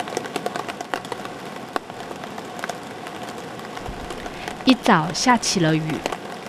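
Raindrops patter on a tarp overhead.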